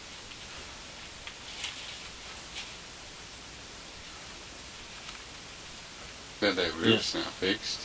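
Leaves rustle as someone pushes through a bush.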